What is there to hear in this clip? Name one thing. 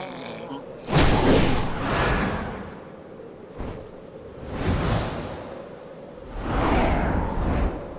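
Large wings beat with heavy whooshes.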